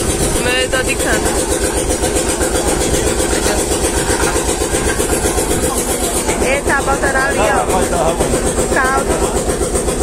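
A motor engine chugs loudly and steadily.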